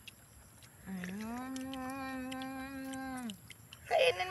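A woman hums a long steady note.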